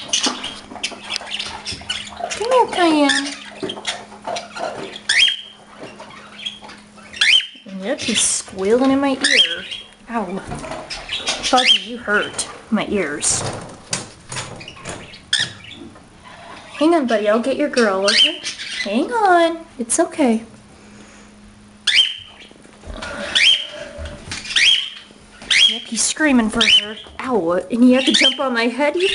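A pet bird chirps and whistles close by.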